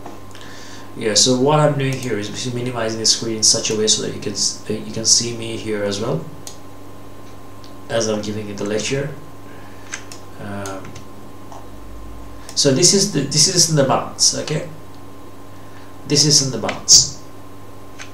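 A man speaks calmly into a microphone, in short bursts with pauses.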